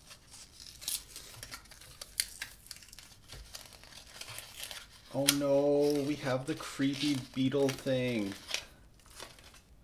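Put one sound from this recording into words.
Paper wrapping rustles and crinkles as hands unwrap a small item.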